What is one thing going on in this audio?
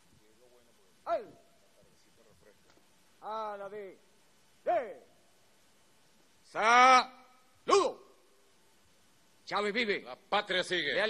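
A man shouts loud commands through a microphone in short bursts, outdoors.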